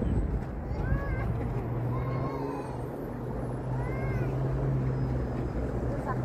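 A playground swing creaks as it sways.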